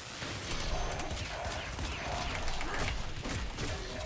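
A blade strikes metal with a burst of crackling sparks.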